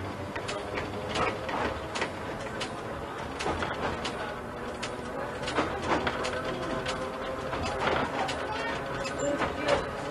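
A train rumbles along the rails with rhythmic wheel clicks.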